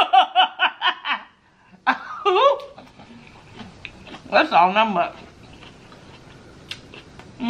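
A young woman bites into soft food and chews it wetly near a microphone.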